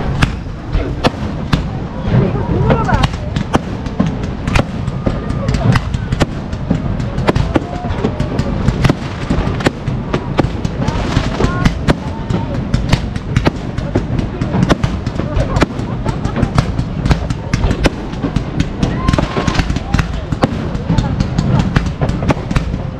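A crowd of onlookers chatters and cheers nearby, outdoors.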